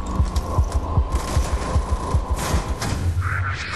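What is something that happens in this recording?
Rapid gunfire rattles close by.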